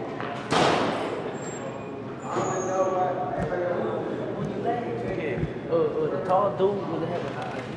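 Several men talk and call out in a large, echoing room.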